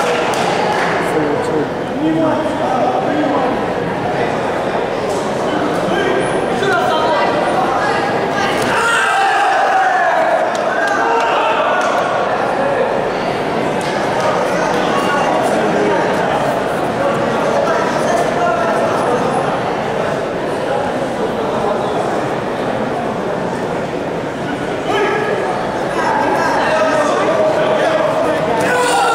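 A crowd of spectators talks and shouts in a large echoing hall.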